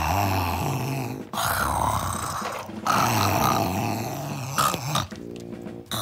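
A young woman groans and moans loudly, close by.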